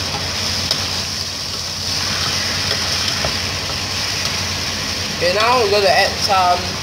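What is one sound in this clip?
Ground meat sizzles in a hot pot.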